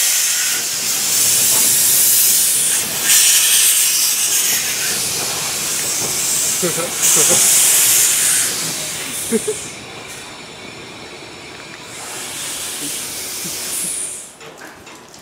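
Steam hisses loudly from a locomotive.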